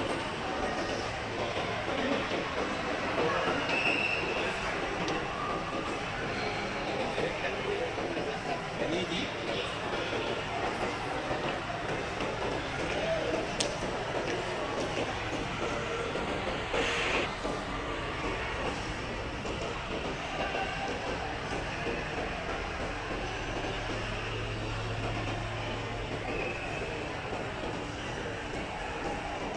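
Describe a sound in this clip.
A crowd murmurs indistinctly throughout a large echoing hall.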